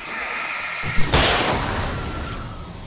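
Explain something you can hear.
A loud explosion bursts.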